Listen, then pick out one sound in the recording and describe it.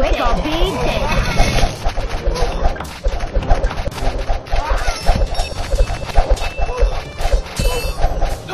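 Swords clash and weapons strike in a game battle.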